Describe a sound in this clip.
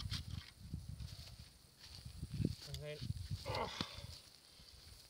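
Roots crack and tear as a stump is pulled from the ground.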